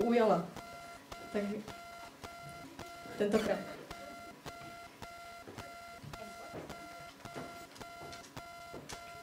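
A woman speaks loudly through a microphone.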